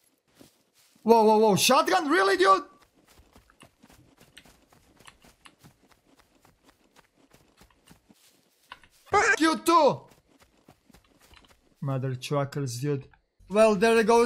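A man speaks into a close microphone in short, animated bursts.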